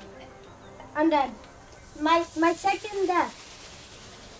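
A young boy talks with animation into a headset microphone.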